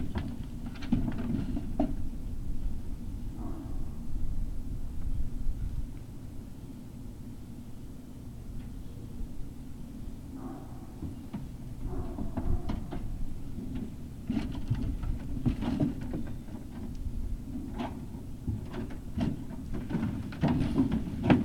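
Paws scuffle and patter on dry ground.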